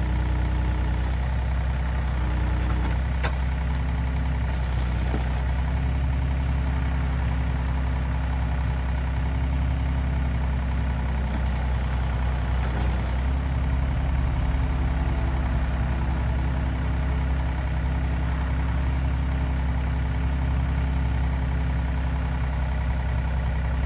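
Hydraulics whine as an excavator arm moves.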